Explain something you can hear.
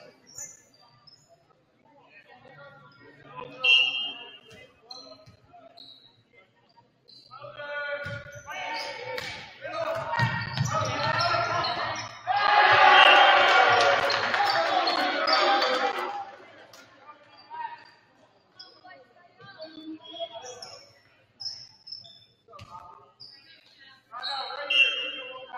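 Players call out and shout to each other on the court.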